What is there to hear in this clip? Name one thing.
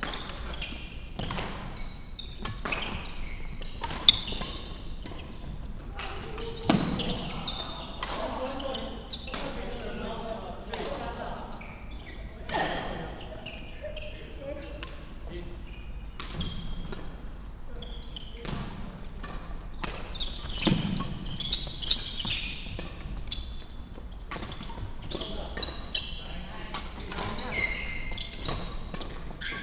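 Shuttlecocks are struck with rackets, with sharp pops echoing around a large hall.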